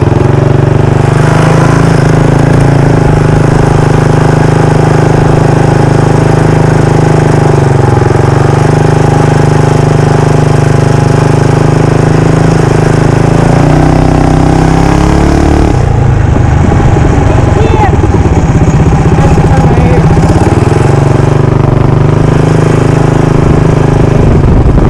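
A single-cylinder four-stroke mini bike engine drones at steady throttle while riding.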